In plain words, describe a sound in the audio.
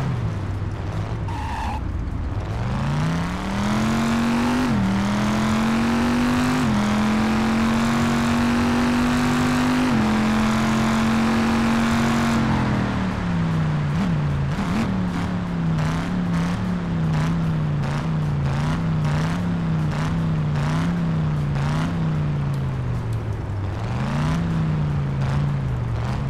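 A car engine revs up and roars, dropping in pitch at each gear change.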